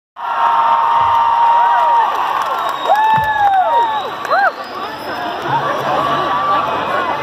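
A crowd cheers and screams close by.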